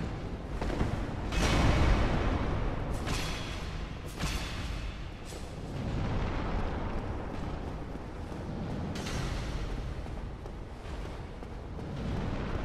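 Heavy metal weapons clash and crash in a fight.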